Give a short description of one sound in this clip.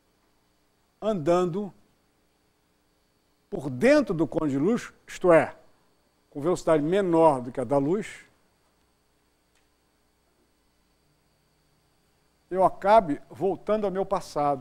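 An elderly man speaks calmly through a microphone, in short bursts with pauses.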